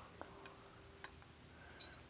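A plastic container clicks against a glass.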